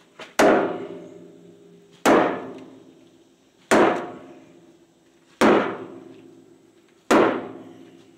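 A sledgehammer strikes a wooden block against a steel frame with loud ringing blows at a slow, steady pace.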